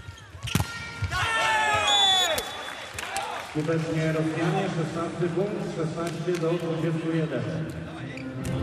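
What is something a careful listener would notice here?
A large indoor crowd cheers and chants loudly.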